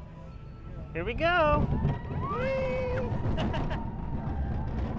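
A child screams with delight on a moving ride.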